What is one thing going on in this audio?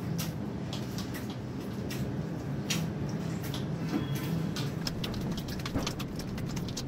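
Hands stir and scrape food in a metal pan.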